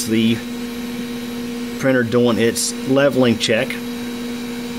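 A 3D printer's motors whir in short, pitched bursts as the print head moves.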